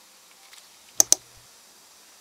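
A metal instrument clicks sharply against a plastic model.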